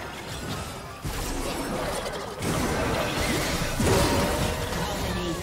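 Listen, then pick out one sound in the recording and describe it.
Video game spells blast and crackle during a fast battle.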